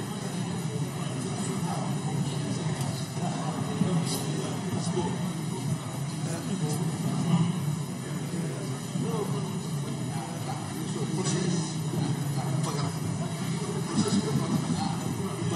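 Many men and women murmur and chatter in a large echoing hall.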